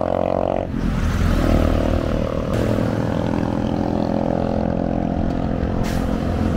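A small truck drives past with a rattling engine.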